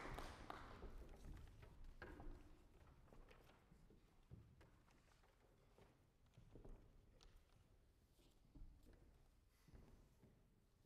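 Soft knocks echo around a large hall.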